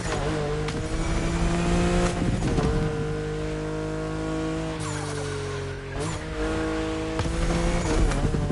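An exhaust pops and crackles.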